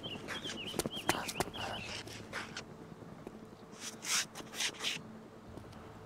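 Boots step on a hard floor.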